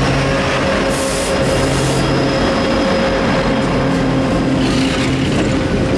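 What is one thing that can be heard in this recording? A diesel locomotive rumbles past close by with a deep engine drone.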